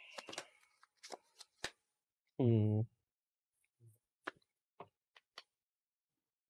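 Playing cards tap and shuffle softly on a table.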